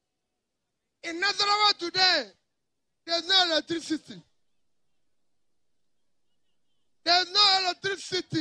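A man speaks loudly into a microphone over loudspeakers, with pauses between phrases.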